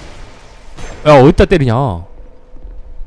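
A blade swings and slashes with a sharp whoosh.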